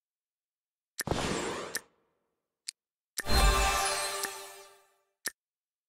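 A magical game effect whooshes and shimmers.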